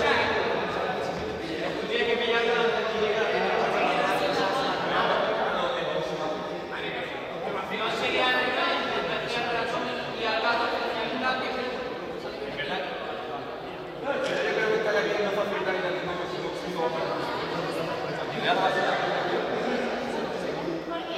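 A young man speaks loudly to a group in a large echoing hall.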